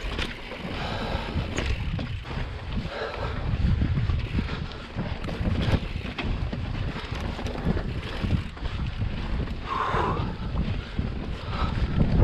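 Bicycle tyres rumble and crunch over rock and gravel.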